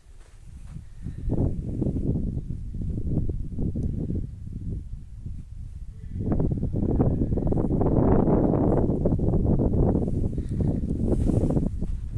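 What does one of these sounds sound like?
Wind buffets the microphone outdoors in strong gusts.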